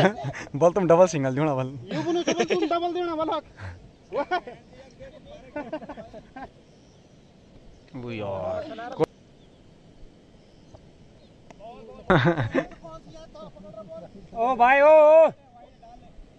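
Young men shout and call out to each other outdoors across an open field.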